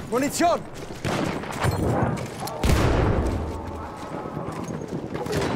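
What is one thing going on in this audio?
A rifle fires loud shots that echo between buildings.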